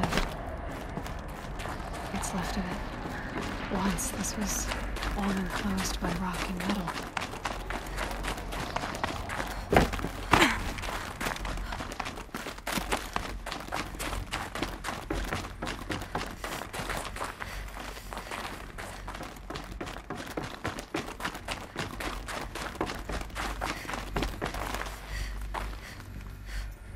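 Footsteps crunch steadily over snow and stone.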